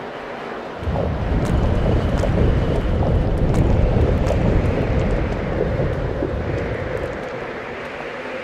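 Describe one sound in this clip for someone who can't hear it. Footsteps tap on rocky ground.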